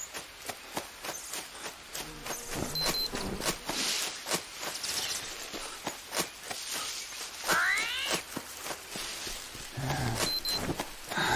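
Footsteps crunch and rustle through dense undergrowth.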